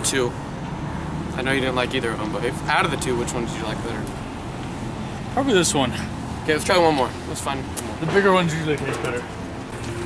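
A second young man talks casually close by.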